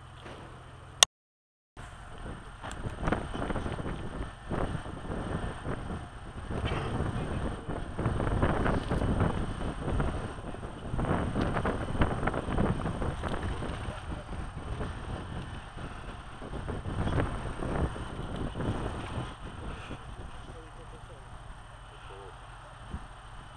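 Wind gusts buffet the microphone outdoors.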